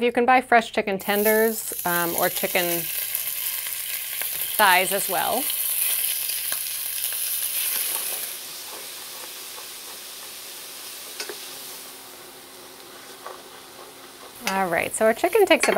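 Chicken sizzles in a hot pan.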